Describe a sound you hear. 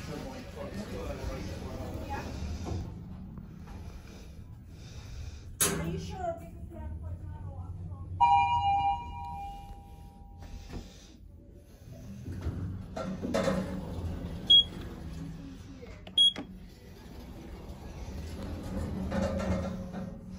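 An elevator hums low and steady as it moves.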